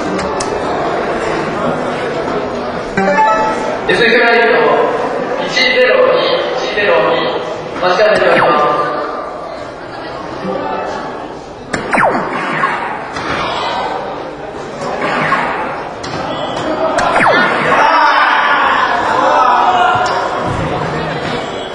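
A crowd chatters in a large echoing hall.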